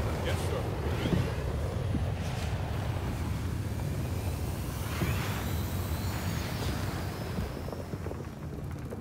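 Explosions rumble and boom in a battle.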